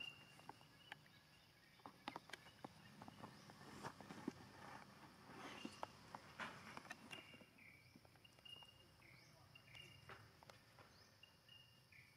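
A monkey grooms fur with soft rustles and clicks close by.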